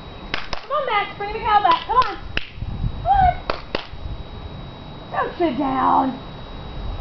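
A young woman talks and exclaims nearby, outdoors.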